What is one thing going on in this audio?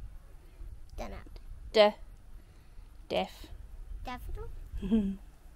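A young child speaks close by in short, lively bursts.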